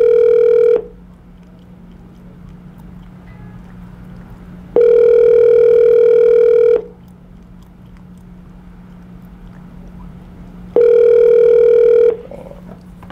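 A phone ring tone sounds in long, repeated beeps through a small speaker.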